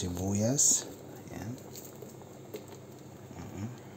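Sliced onions drop into a pot.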